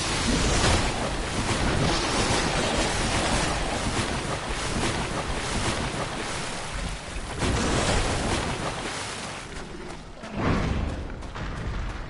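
Footsteps rustle through tall dry grass.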